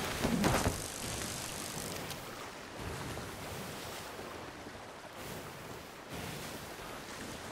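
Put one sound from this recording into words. Rough sea waves surge and crash against a boat.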